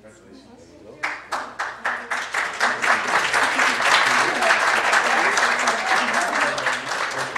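An audience applauds in a room, with quick steady clapping.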